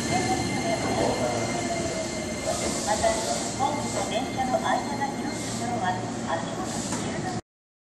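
A second train approaches slowly with a low rumble.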